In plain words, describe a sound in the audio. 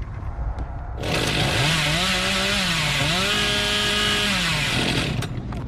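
A chainsaw revs.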